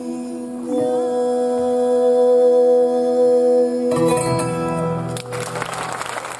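A woman and a man sing a long held note together through microphones.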